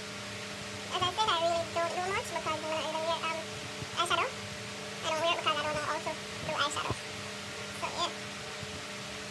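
A young woman sings close by.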